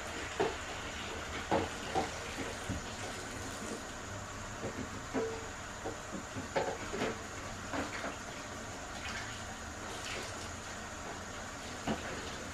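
Dishes clink and clatter.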